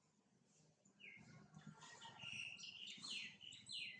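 A baby monkey squeals shrilly up close.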